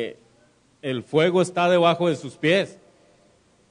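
A man speaks with animation into a microphone through loudspeakers in an echoing room.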